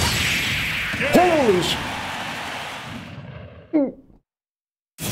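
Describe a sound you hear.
A young man shouts with excitement close to a microphone.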